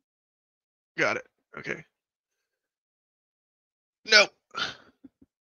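A young man exclaims in short bursts close by.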